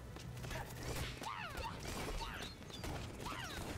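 Video game sound effects whoosh and chirp during a fight.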